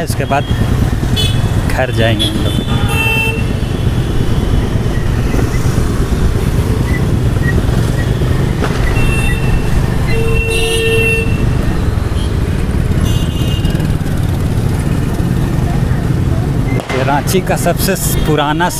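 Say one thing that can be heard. Traffic roars steadily on a busy road.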